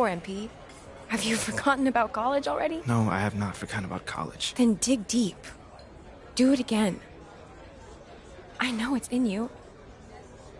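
A young woman speaks calmly and close by.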